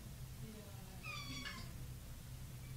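A kitten mews briefly.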